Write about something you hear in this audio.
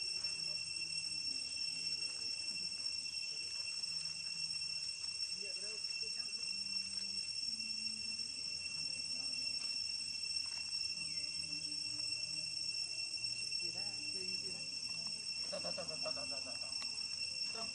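Dry leaves rustle under running monkeys.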